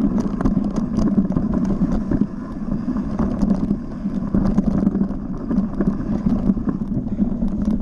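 A bike's tyres rumble over a bumpy dirt trail.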